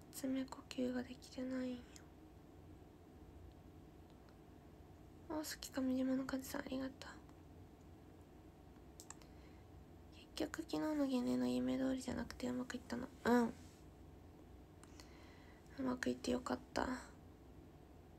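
A young woman speaks softly and close to a microphone, in short bursts with pauses.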